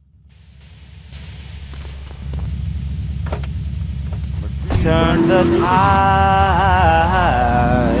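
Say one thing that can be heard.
A car engine rumbles and revs as the car pulls away.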